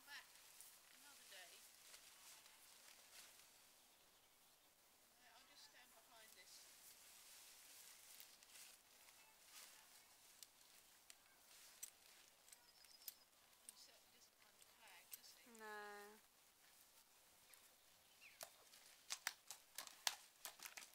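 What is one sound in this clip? A plastic sack rustles and crackles as a horse drags it along.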